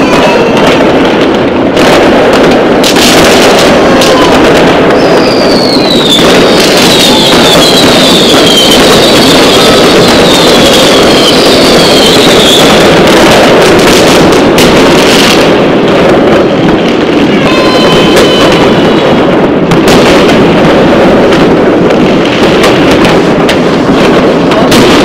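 Fireworks crackle and bang in the distance outdoors.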